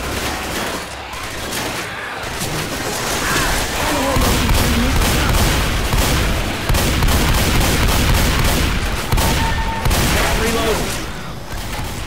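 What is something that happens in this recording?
Guns fire in rapid bursts close by.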